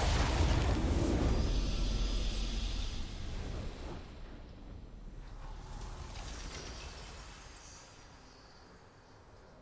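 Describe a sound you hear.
A triumphant video game fanfare swells and then dies away.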